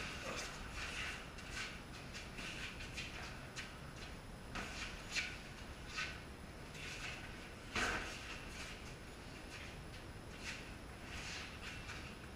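Sneakers scuff and squeak on a concrete floor.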